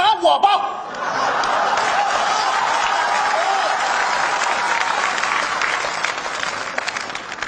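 A large audience laughs and applauds in a big hall.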